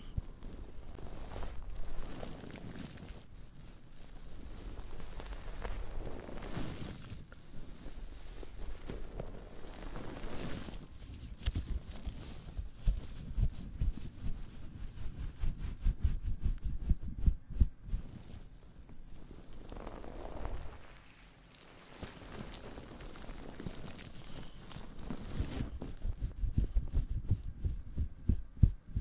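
Hands squeeze and crinkle a soft crackly object close to a microphone.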